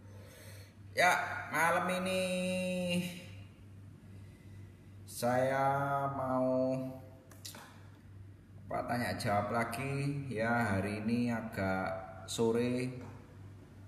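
A man speaks close to the microphone in a drawn-out, singing voice.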